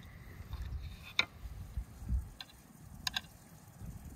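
A fork clinks against a plate.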